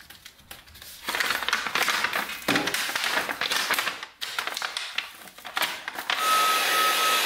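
A plastic heat-shrink sleeve crinkles as it is handled.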